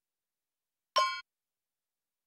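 A short, bright electronic menu chime rings once.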